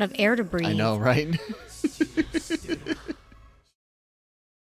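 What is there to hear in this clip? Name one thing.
A man laughs loudly close to a microphone.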